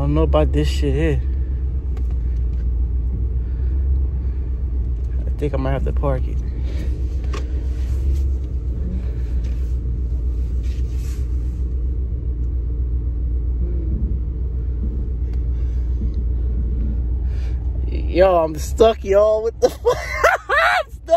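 A car engine rumbles low and steady inside the car.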